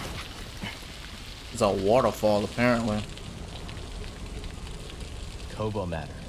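Water rushes down steadily nearby.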